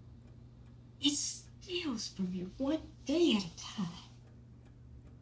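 A woman speaks nearby in a tearful, anguished voice.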